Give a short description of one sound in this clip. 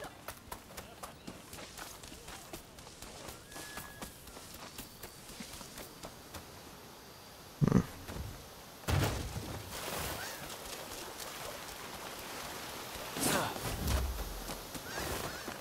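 Footsteps patter quickly over grass and stone.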